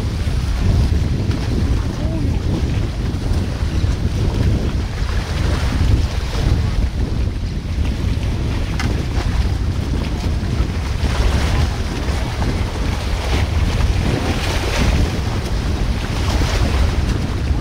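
Rushing river water flows steadily over rocks.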